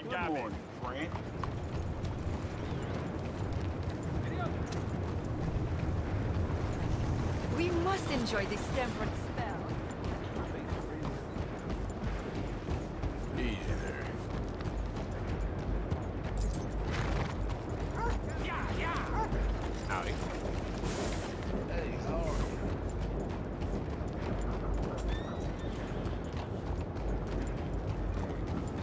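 A horse's hooves clop steadily on a dirt road.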